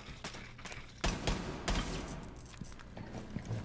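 Footsteps thud on a hard floor at a quick pace.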